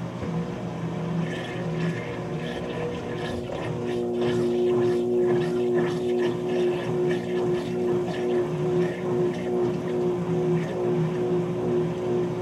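Wet laundry swishes and sloshes around in a spinning drum.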